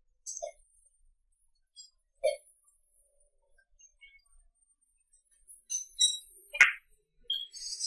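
Billiard balls click sharply against each other.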